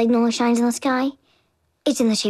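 A young girl speaks firmly, close by.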